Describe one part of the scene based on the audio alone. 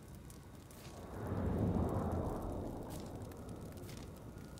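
A deep whooshing rumble swells and slowly fades.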